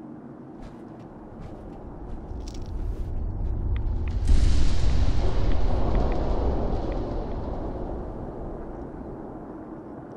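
Wind rumbles low outdoors, swelling loud and then slowly fading.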